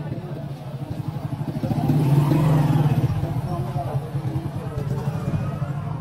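A motorcycle engine putters close by and passes.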